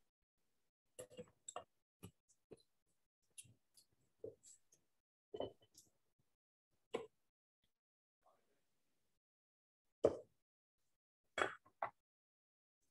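Glass jars clink softly on a counter.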